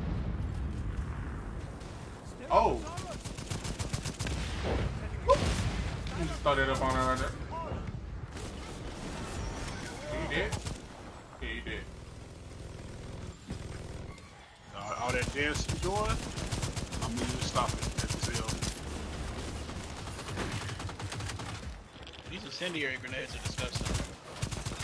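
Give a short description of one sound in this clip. Gunfire rattles rapidly in bursts.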